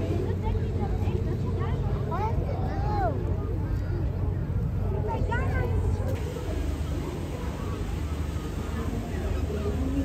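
A powerboat engine roars steadily across the water.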